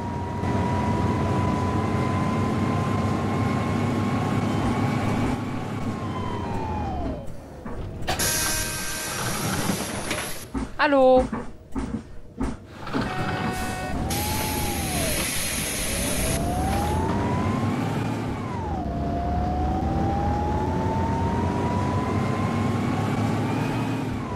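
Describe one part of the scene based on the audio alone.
A bus engine hums with a whine that slows down and later rises again.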